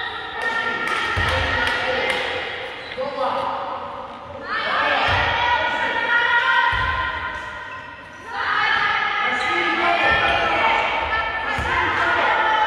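A crowd of spectators chants and sings loudly in an echoing hall.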